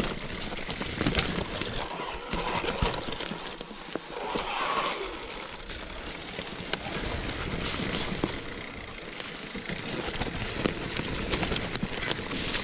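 Bicycle tyres crunch and rattle over a bumpy dirt trail.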